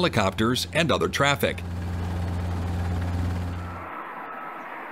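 A helicopter hovers with a steady, low thrumming hum.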